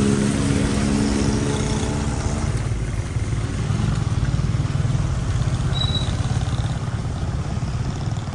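A car engine rumbles steadily up close.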